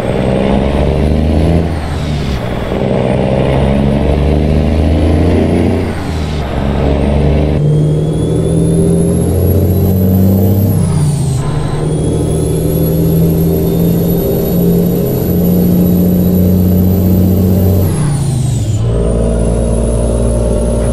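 A truck's diesel engine rumbles and climbs in pitch, dropping briefly at each gear change.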